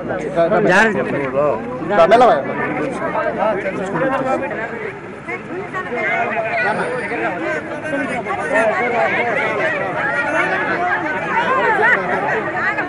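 A crowd of men and women talks and calls out all around, close by.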